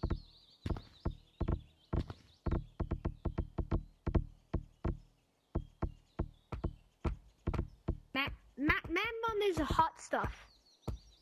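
Hands thump repeatedly and quickly on wooden surfaces.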